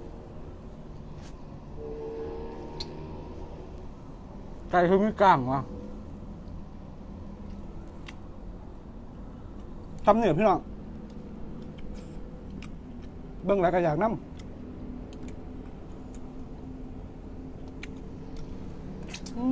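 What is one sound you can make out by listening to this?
A young man chews and slurps food noisily.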